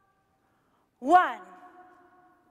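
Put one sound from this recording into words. A young woman sings a short, sliding shout-like note that echoes.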